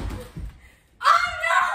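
A boy shouts excitedly.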